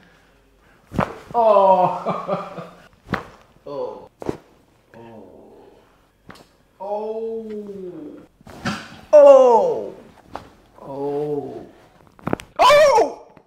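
Joints crack with sharp pops.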